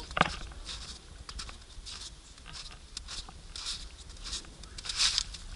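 Footsteps crunch steadily in snow.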